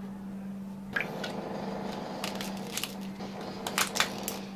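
Plastic lids click and snap onto cups.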